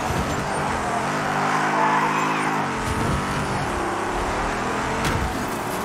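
A video game car engine roars and revs steadily.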